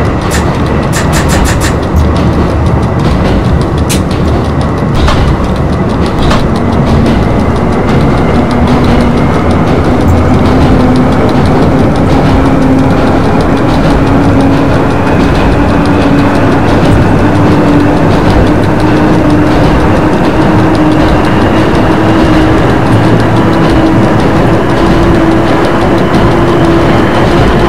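Train wheels rumble steadily on the rails.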